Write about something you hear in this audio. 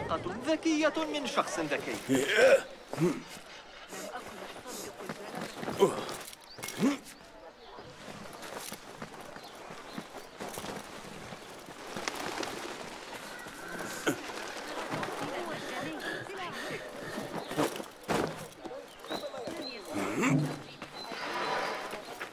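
Quick footsteps patter on stone as a figure runs.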